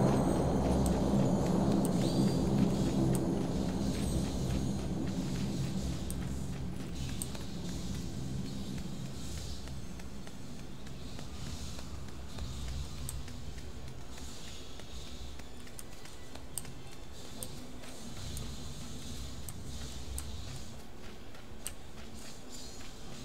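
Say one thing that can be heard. Footsteps crunch over rocky ground and grass.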